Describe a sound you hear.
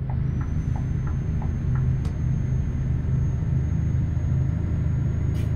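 A heavy truck engine drones steadily while driving.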